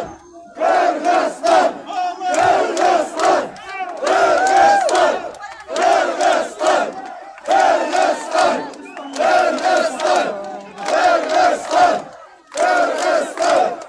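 A crowd of men chants slogans loudly in rhythmic bursts outdoors.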